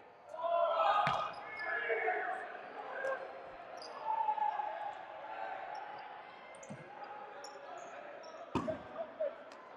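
A rubber ball smacks against a player.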